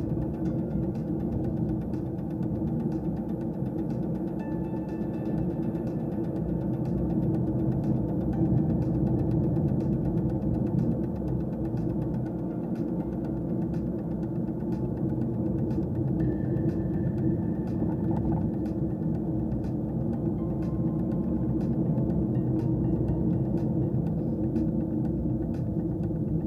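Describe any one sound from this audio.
Tyres rumble on a rough road surface.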